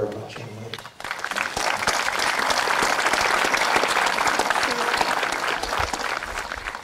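A crowd applauds and claps steadily.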